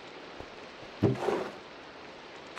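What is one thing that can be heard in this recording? A wooden barrel opens with a thud.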